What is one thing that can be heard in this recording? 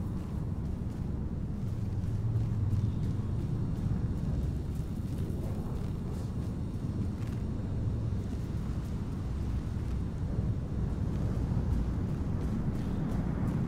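A large vehicle's engine rumbles low and steady nearby.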